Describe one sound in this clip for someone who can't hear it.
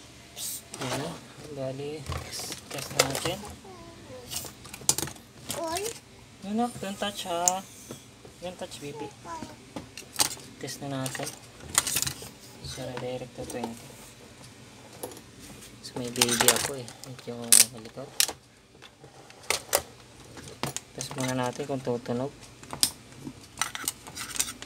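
Wires and small parts rattle as hands move them.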